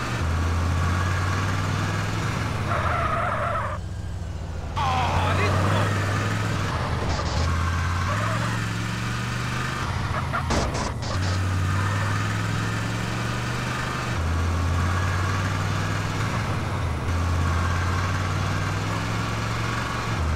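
A car engine hums steadily, rising and falling as the car speeds up and shifts gears.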